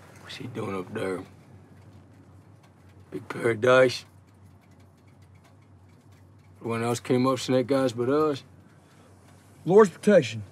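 A man speaks quietly and tensely, close by, in short bursts with pauses.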